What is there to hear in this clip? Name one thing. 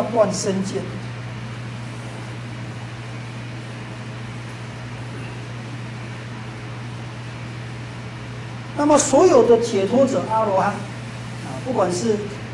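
An elderly man speaks calmly through a clip-on microphone.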